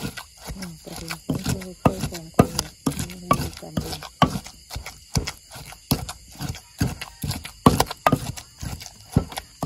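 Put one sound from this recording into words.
A wooden pestle pounds rhythmically in a clay mortar with dull thuds.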